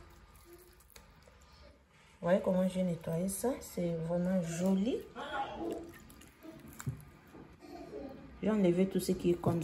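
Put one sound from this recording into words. Fingers squelch softly against wet, raw fish.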